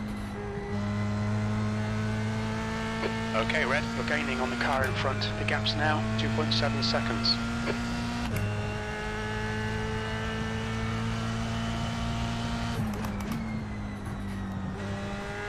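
A racing car engine drones steadily and shifts gears.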